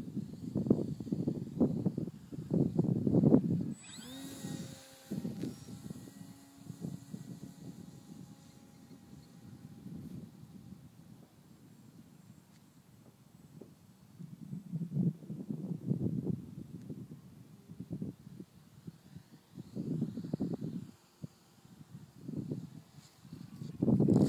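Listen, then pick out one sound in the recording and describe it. Wind buffets the microphone outdoors in gusts.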